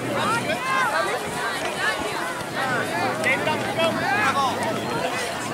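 Young players and spectators shout and call out across an open field.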